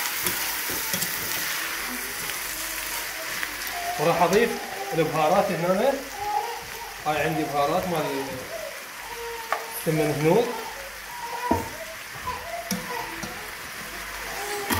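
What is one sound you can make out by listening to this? A spoon stirs and scrapes against a metal pot.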